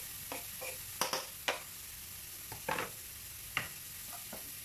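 A knife scrapes chopped herbs off a plastic board into a pan.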